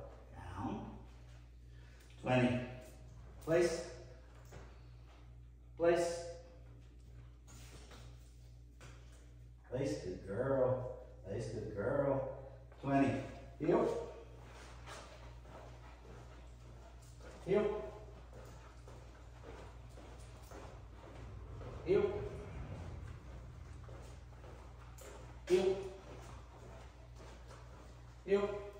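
A man gives short commands to a dog in a room with a slight echo.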